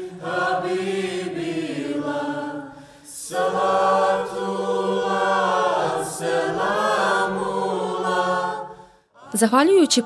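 A mixed choir of men and women sings together in unison, pausing briefly between phrases.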